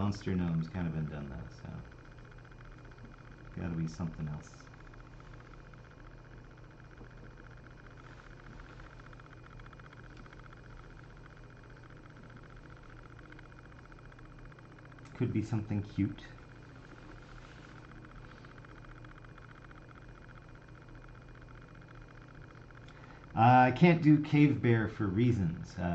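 A man talks calmly into a close microphone, pausing often.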